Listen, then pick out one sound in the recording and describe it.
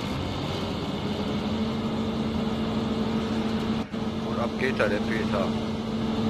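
A combine harvester threshes grain with a loud, steady whirr.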